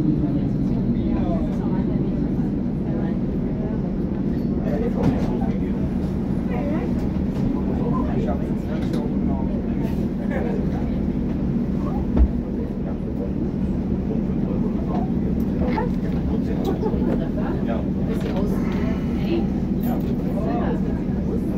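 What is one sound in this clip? A train's motors hum steadily from inside the carriage.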